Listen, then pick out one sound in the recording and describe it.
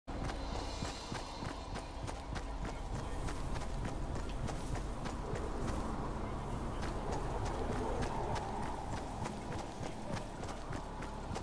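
Footsteps run quickly over grass at a steady pace.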